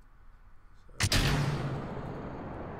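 A rocket engine ignites with a sudden blast.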